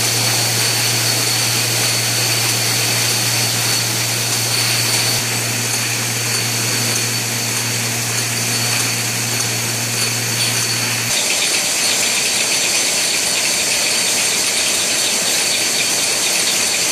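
Conveyor machinery hums and whirs steadily.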